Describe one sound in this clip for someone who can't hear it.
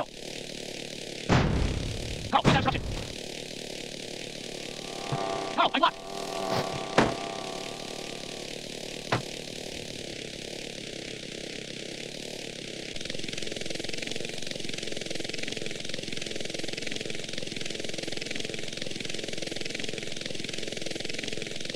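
A helicopter's rotor whirs steadily.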